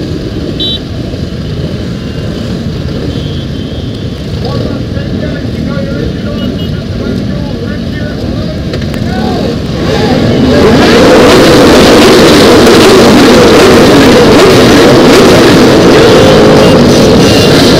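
Many motorcycle engines idle and rumble close by.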